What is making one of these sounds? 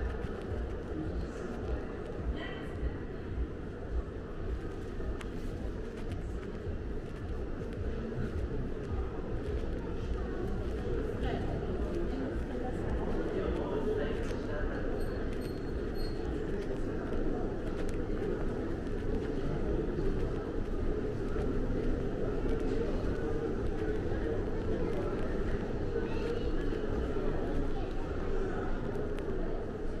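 A steady low background hum fills a large indoor hall.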